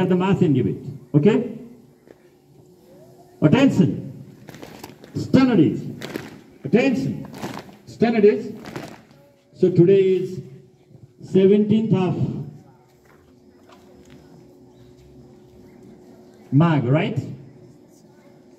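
A man calls out short commands loudly through a microphone and loudspeaker outdoors, with pauses between them.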